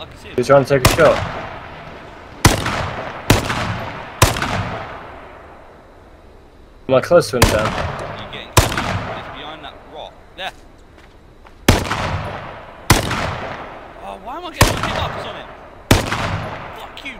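Rifle shots crack loudly one after another, echoing across open ground.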